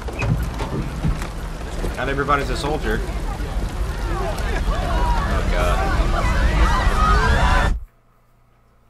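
A crowd screams in panic outdoors.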